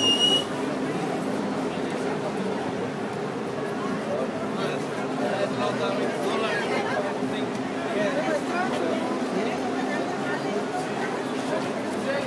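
A crowd of people chatters and shouts nearby.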